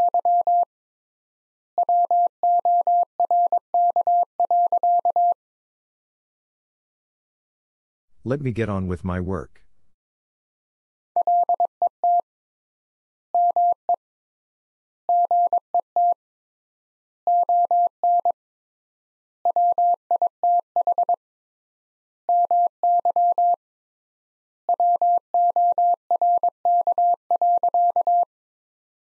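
Morse code beeps out in short and long steady tones.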